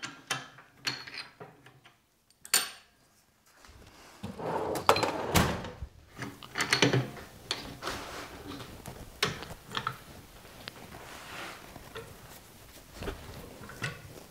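Metal parts of a lathe chuck click and clank.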